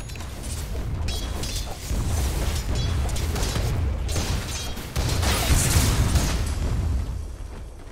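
Game spell effects and weapon hits clash and crackle in a fight.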